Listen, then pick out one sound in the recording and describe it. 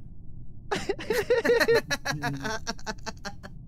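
A young man laughs loudly into a microphone.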